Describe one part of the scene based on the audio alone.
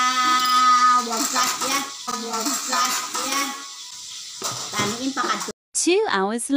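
A woman talks nearby with animation.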